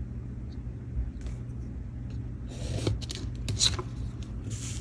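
A pencil scratches along a ruler on paper.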